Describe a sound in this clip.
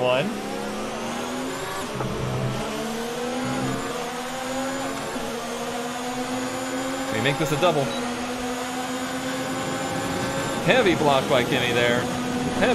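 A racing car engine whines loudly, its pitch climbing and dropping as it shifts through the gears.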